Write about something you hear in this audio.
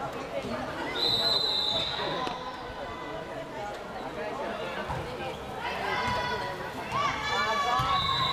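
Sneakers squeak sharply on the wooden court.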